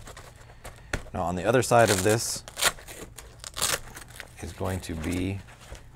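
Hands rustle and tap against a soft case.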